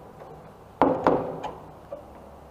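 A wooden door swings shut with a knock.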